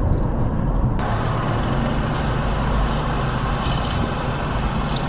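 A car drives past close by with a passing whoosh.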